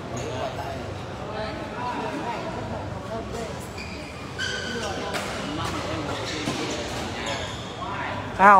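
A shuttlecock is struck with a racket in quick sharp taps.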